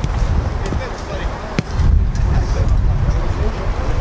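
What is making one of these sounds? A football is kicked on artificial turf.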